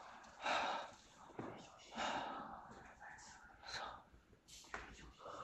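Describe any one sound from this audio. Footsteps scuff slowly across a gritty floor.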